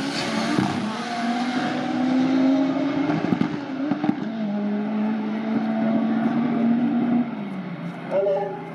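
Racing car engines roar loudly as the cars speed away into the distance.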